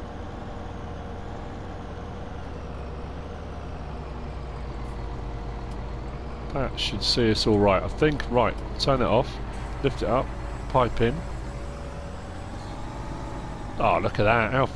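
A tractor engine hums steadily at a low idle.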